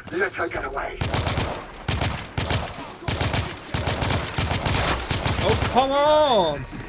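A rifle fires rapid shots in an echoing hall.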